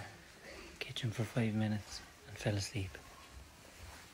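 A man speaks softly, close by.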